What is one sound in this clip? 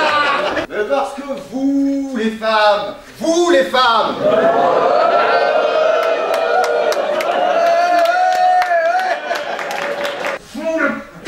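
A middle-aged man declaims loudly on a stage.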